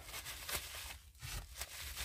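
A paper towel rubs and rustles against a hard surface.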